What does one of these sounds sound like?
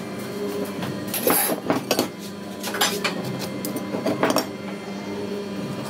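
A metal square knocks lightly against wood.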